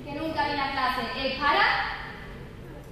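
A young woman speaks through a microphone in a large hall.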